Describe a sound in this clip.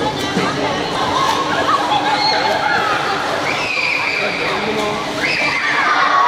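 A man splashes as he swims through the water.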